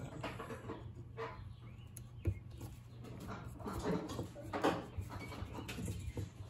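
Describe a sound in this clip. A screwdriver turns a small screw in metal with faint scraping clicks.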